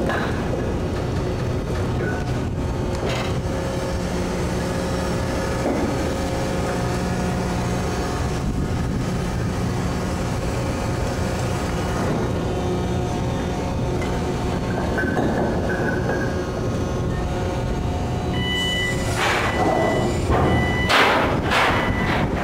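A heavy chain clanks and rattles as it is lifted.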